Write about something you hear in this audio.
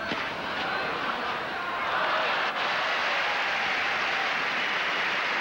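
A crowd applauds loudly.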